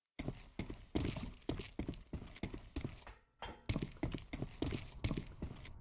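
Heavy footsteps thud quickly and steadily on a hard floor.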